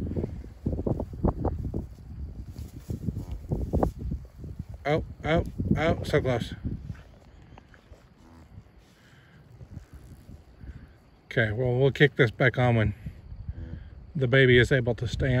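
A cow licks a newborn calf with wet, rasping strokes.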